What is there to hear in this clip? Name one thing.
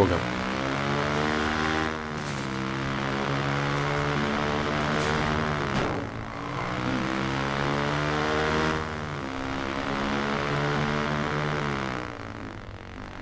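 A motorbike engine roars and revs up repeatedly as it shifts gears.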